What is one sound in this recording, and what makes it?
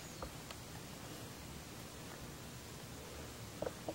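A man exhales in a slow breath.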